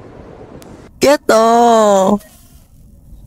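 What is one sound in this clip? A young man shouts out loudly.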